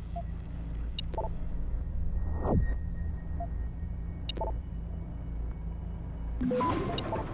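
Electronic interface blips and chimes sound.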